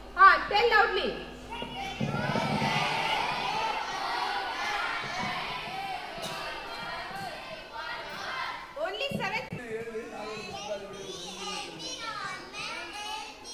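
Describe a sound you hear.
A crowd of children chant and shout together outdoors.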